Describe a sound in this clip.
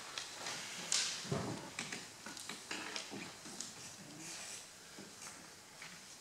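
A piano plays softly.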